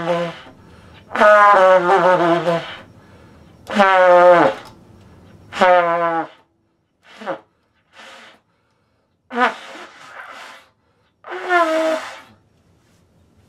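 A trumpet plays short bursts of notes up close.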